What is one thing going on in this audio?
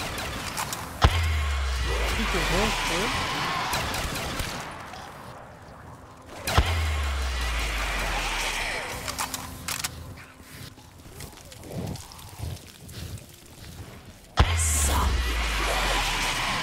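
A rifle fires single loud shots, each with a deep booming rumble.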